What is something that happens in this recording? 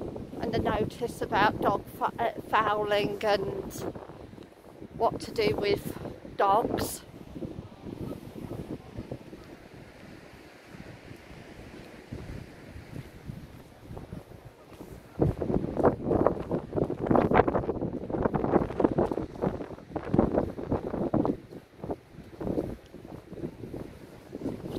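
Wind gusts outdoors, rumbling and buffeting.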